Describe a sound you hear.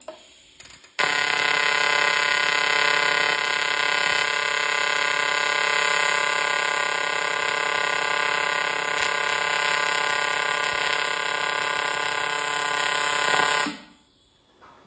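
A welding arc buzzes and hisses steadily.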